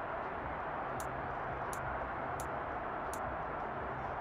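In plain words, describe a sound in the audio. Short menu clicks sound a few times.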